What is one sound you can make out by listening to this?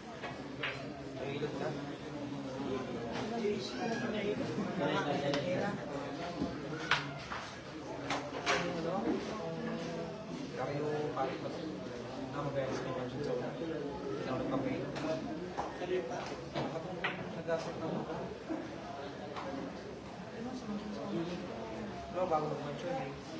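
Pool balls click sharply against each other.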